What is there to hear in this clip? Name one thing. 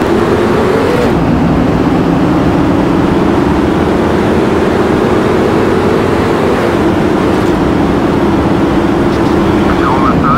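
Race car engines roar loudly as the cars speed along.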